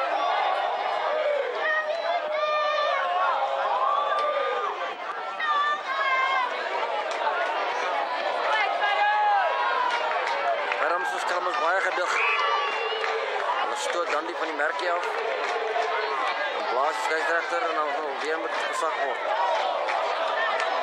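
Young men shout and call out to each other outdoors, some close by and some farther off.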